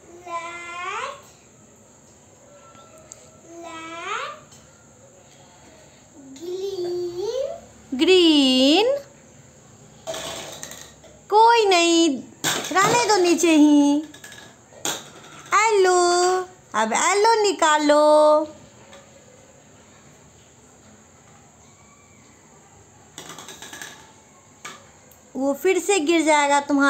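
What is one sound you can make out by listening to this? A young girl talks and sings in a lively, close voice.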